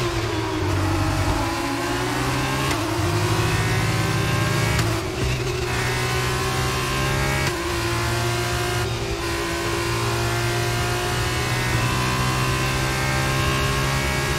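A racing car engine whines at high revs, rising in pitch and dropping briefly with each gear change.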